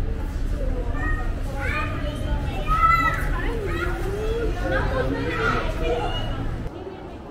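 Young women chat nearby with animation.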